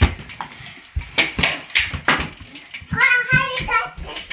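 A toy car rattles and clatters across a wooden floor.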